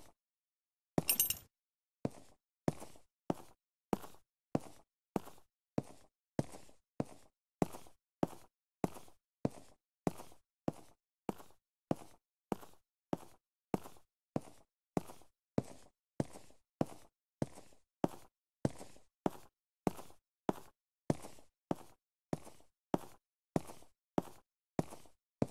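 Footsteps thud steadily on a rocky floor, echoing in a cave.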